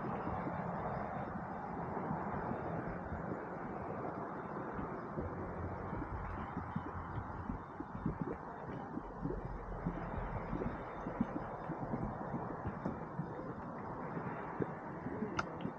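Steam hisses steadily from a hot spring outdoors.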